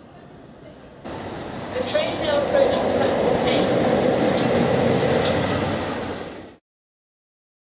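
A diesel locomotive engine roars loudly as the train passes close by.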